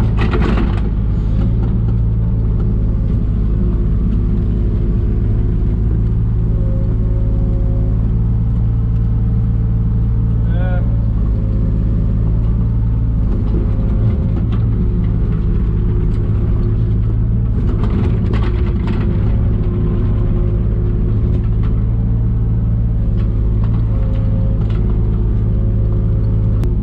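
A diesel excavator engine drones steadily from close by.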